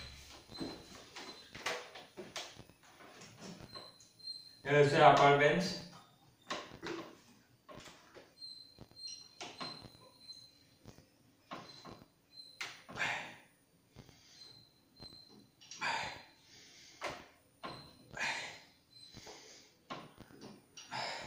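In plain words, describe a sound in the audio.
A young man breathes hard and grunts with effort nearby.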